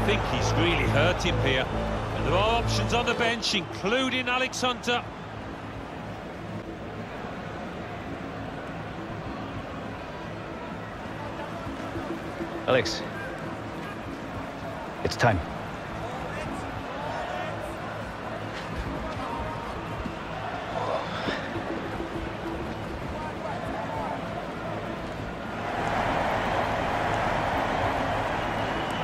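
A stadium crowd roars and cheers.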